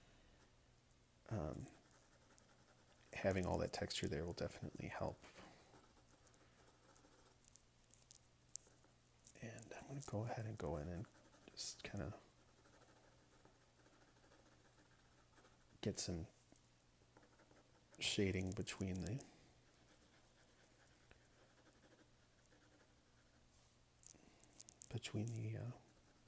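A pencil scratches and rasps across paper.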